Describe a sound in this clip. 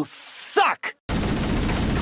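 A video game weapon fires bursts of shots.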